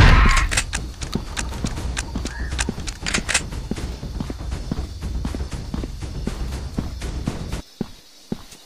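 Footsteps crunch steadily on dirt.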